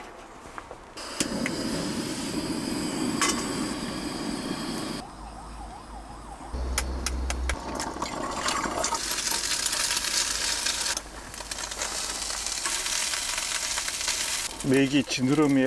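Food sizzles in a hot frying pan.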